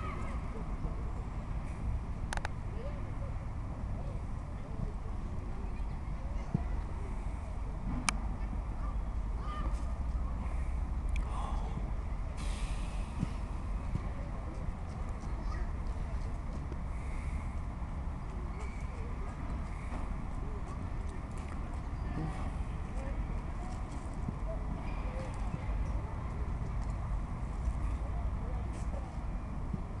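Wind rumbles steadily across an open field.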